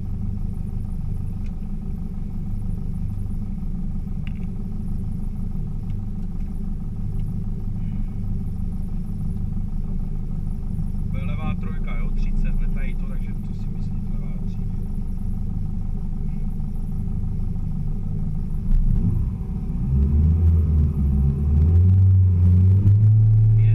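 A car engine idles with a low, steady rumble from inside the car.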